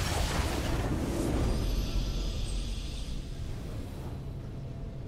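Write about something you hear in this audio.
A bright triumphant fanfare swells and then fades away.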